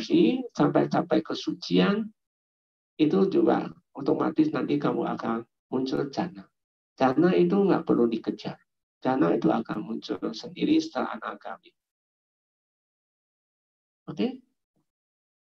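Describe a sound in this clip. A man speaks calmly into a microphone, heard through an online call.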